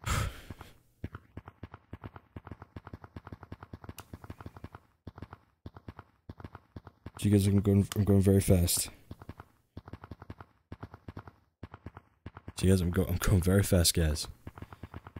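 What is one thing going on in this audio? Quick soft taps repeat steadily as hands grip and climb.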